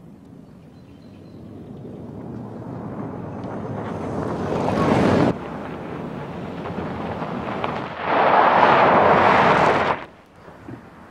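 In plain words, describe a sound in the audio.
An engine roars as a vehicle drives closer and passes.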